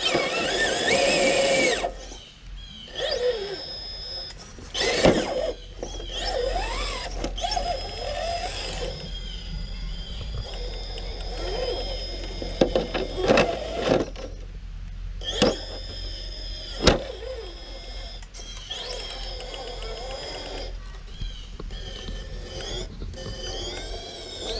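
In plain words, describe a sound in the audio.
A small electric motor whines.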